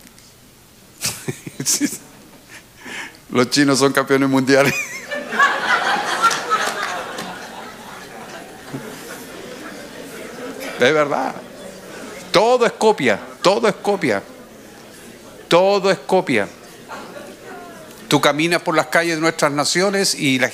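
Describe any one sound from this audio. A middle-aged man speaks with animation through a microphone in an echoing hall.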